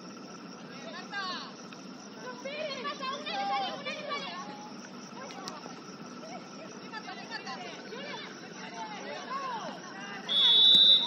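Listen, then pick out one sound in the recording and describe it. Young women shout to one another across an open field outdoors.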